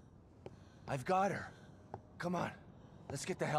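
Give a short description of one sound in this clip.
A man shouts urgently, close by.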